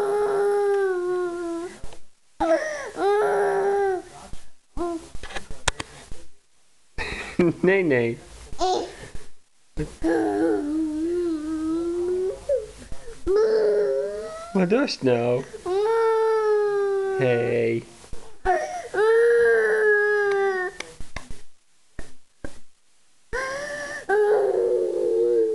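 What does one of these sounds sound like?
A toddler cries and whimpers close by.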